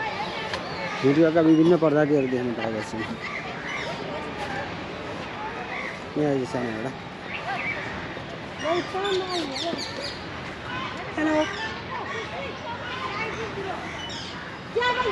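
A young woman talks nearby with animation.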